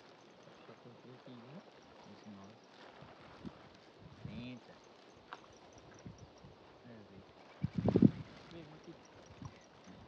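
A man talks in a low voice outdoors.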